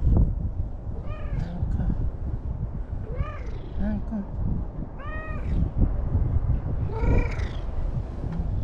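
A cat meows in short, rising-and-falling calls.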